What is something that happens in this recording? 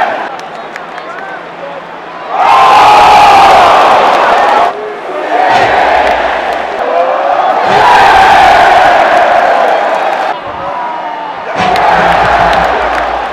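A large crowd roars and cheers loudly in a big arena.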